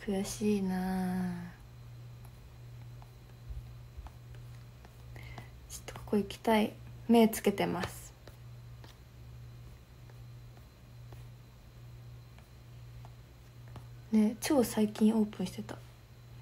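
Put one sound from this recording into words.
A young woman talks softly and casually, close to a microphone, in short bursts.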